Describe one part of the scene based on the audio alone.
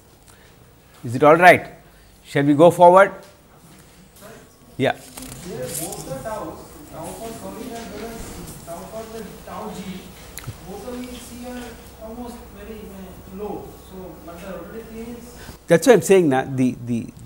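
An elderly man speaks calmly into a close microphone, pausing now and then.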